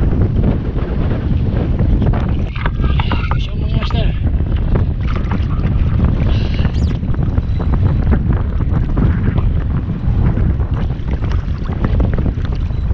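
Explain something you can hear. Waves slap against a kayak hull.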